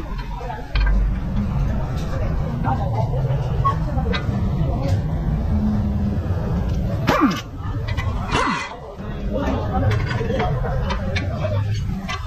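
Metal parts clank and knock.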